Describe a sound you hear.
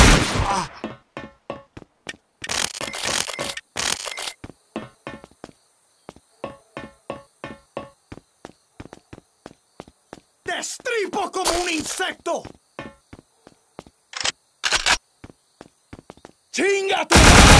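Footsteps run.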